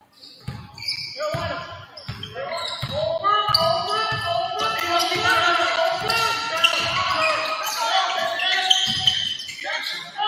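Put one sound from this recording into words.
A crowd cheers and shouts loudly in an echoing gym.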